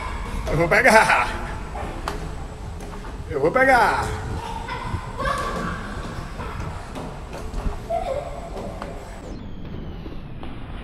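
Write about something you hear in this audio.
Small scooter wheels rumble over a smooth concrete floor in a large echoing space.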